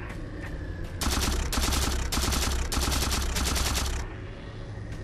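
A science-fiction energy weapon fires.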